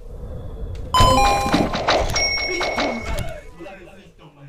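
A bright chime rings.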